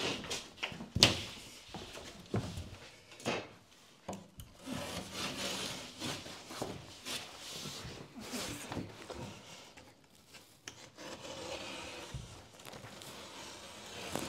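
A large drywall sheet scrapes and thumps as it is shifted against a wall.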